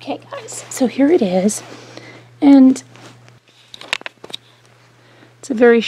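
Sequins rustle and click under a hand brushing them.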